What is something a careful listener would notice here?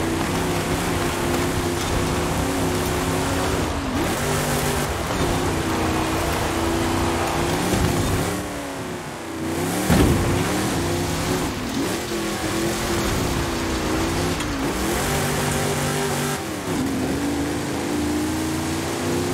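A car engine roars steadily and shifts gears as it races.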